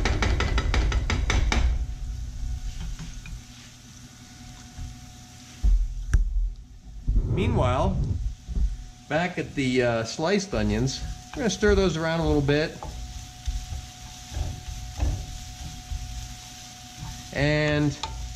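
A wooden spatula scrapes and stirs food in a frying pan.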